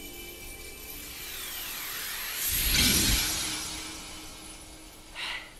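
A shimmering whoosh swells and then fades.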